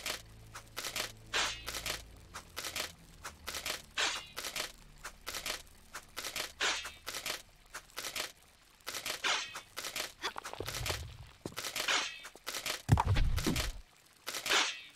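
Metal spear traps swish back and forth in quick, repeated whooshes.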